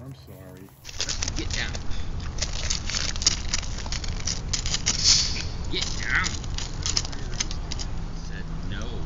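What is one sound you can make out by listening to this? A wild pig's hooves crunch on gravel close by.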